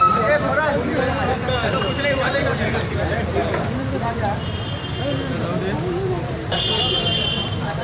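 A crowd of men talk and shout over one another close by.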